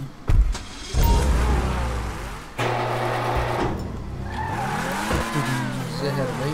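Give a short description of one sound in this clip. A sports car engine roars and revs as the car speeds off.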